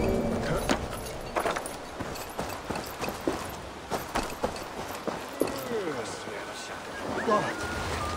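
Footsteps crunch quickly over snow and gravel.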